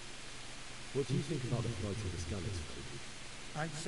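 A young man asks a question calmly.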